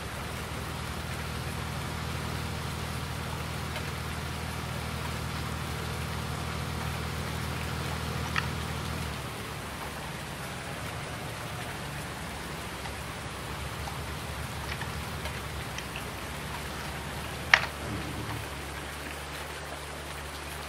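A tractor engine hums steadily, then drops to a low idle.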